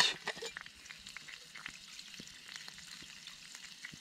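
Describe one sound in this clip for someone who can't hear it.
Hot water pours from a flask into a cup.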